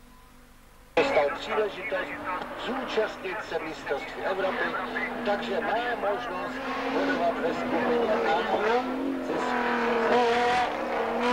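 A racing car engine revs hard and changes gear through the bends.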